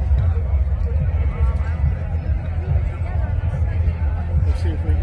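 A crowd of people chatters and talks outdoors at a distance.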